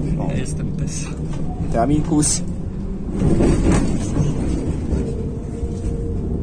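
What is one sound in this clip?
A tram hums and rumbles steadily as it rides along.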